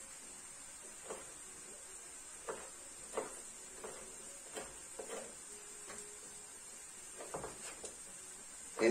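A knife taps on a wooden cutting board.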